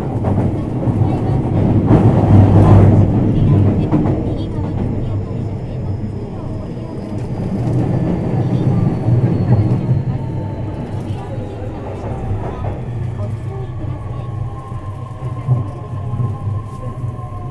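A train hums steadily.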